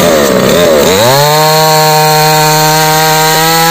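A chainsaw idles with a steady buzz.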